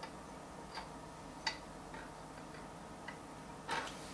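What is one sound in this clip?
Metal pliers click as they snap shut.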